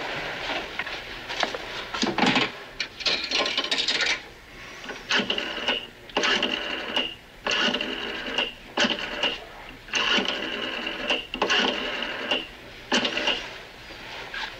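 A rotary phone dial whirs and clicks.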